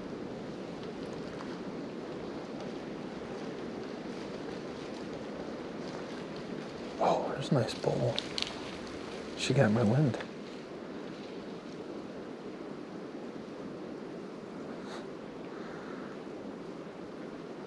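Wind blows steadily outdoors through bare trees.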